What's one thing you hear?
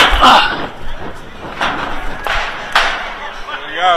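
Footsteps hurry down metal stairs.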